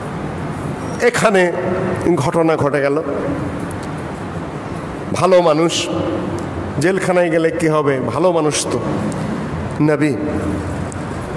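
An elderly man speaks with animation into a headset microphone, in bursts with pauses.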